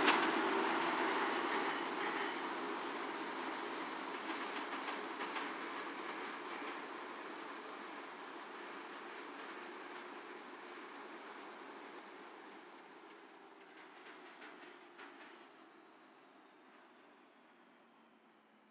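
A subway train rumbles along the tracks and fades into the distance.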